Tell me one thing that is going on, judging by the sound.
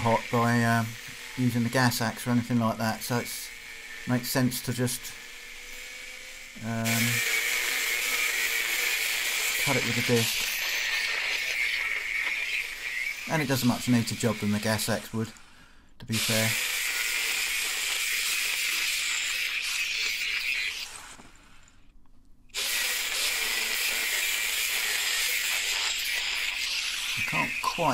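An angle grinder whines loudly as it grinds metal, stopping briefly now and then.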